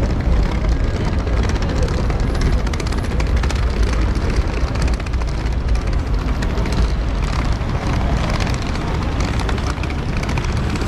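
Suitcase wheels rattle over paving stones nearby.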